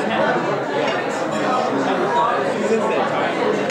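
An elderly man talks and laughs with animation close by.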